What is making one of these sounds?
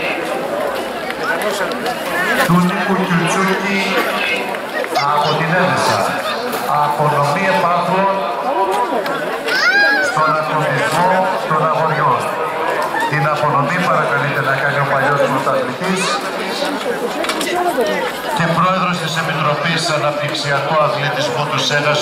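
A crowd of spectators chatters close by, outdoors.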